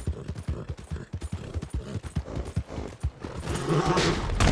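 A horse gallops with hooves pounding on a dirt road.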